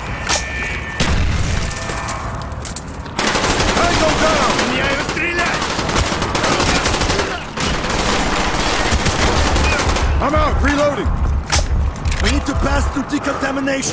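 Rapid gunfire bursts loudly in a hard, echoing corridor.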